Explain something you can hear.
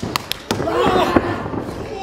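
A young man shouts with effort.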